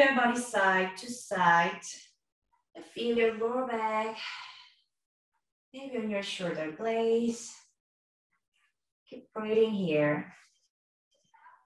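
A young woman speaks calmly, in short instructing phrases.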